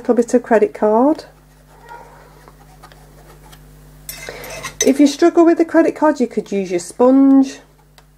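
A paintbrush scrapes softly on paper.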